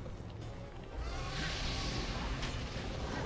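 A dragon breathes a roaring blast of fire.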